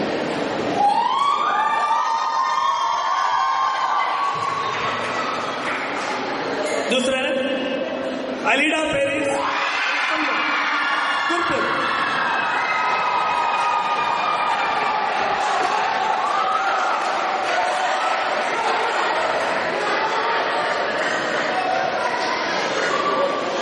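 A man speaks steadily into a microphone, heard over loudspeakers in an echoing hall.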